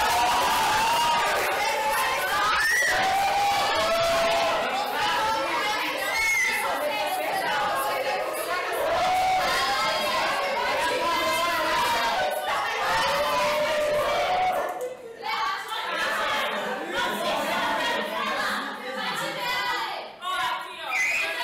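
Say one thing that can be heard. A group of teenagers shouts and laughs.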